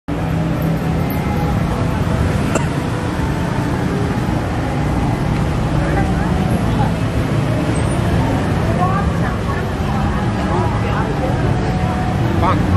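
City traffic rumbles steadily in the distance.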